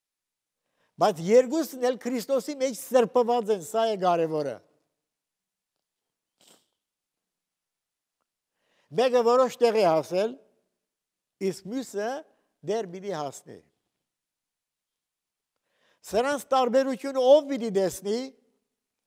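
An elderly man speaks slowly and earnestly through a microphone, with pauses.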